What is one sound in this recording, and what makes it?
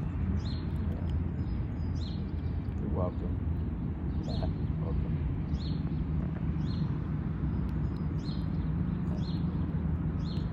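A squirrel nibbles and gnaws on a nut close by.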